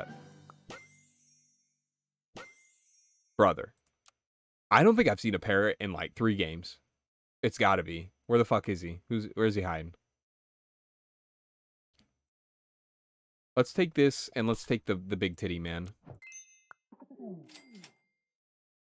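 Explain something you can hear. Short electronic chimes sound from a game.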